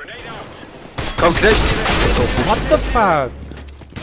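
Gunshots ring out in rapid bursts.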